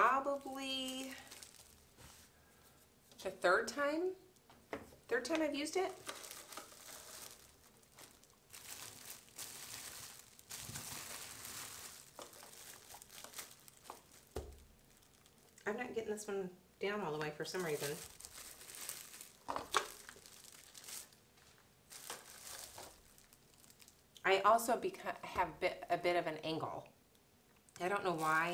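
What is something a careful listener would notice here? Plastic wrap crinkles as hands handle it.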